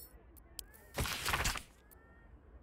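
A book opens with a soft rustle of pages.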